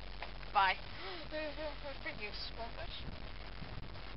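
A young boy speaks briefly, close by.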